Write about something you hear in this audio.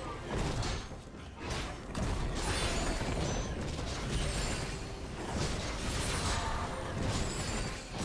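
Sword slashes and hits clash in a video game battle.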